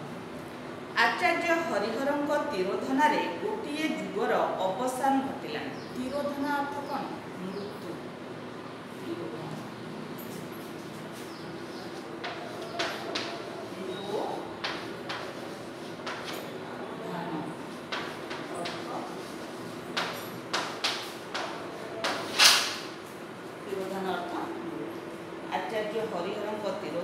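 A middle-aged woman reads aloud clearly.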